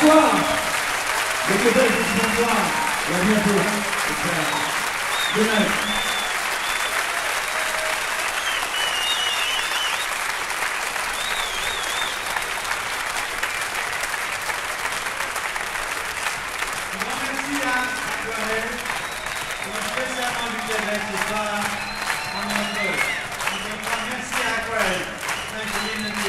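A jazz-rock band plays live on stage.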